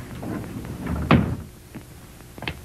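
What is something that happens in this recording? A door slides shut with a thud.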